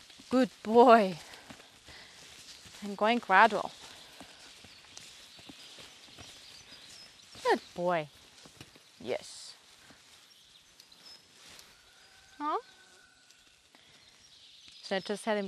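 Horse hooves thud softly on sand.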